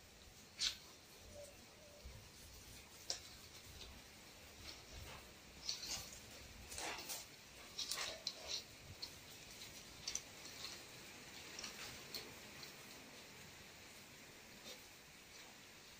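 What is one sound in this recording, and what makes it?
Stiff palm leaves rustle and crackle as they are woven by hand.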